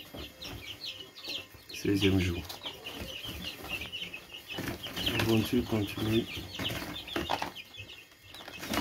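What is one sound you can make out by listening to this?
Many chicks cheep in high, rapid chirps throughout.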